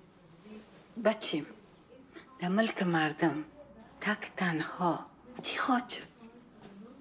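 A middle-aged woman speaks anxiously, close by.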